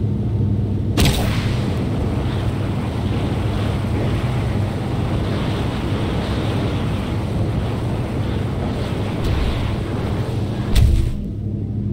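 Wind rushes loudly past a falling figure.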